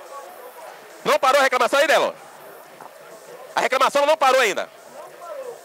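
Young men shout loudly and call out close by.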